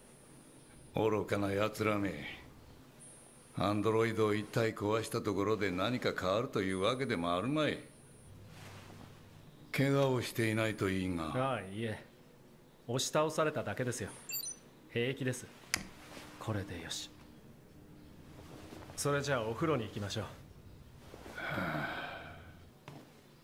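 An elderly man speaks weakly and slowly, close by.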